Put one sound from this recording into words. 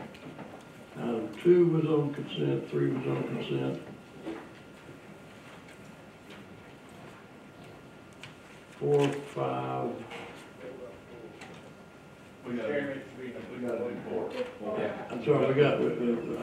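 A man speaks calmly through a microphone in a large, echoing room.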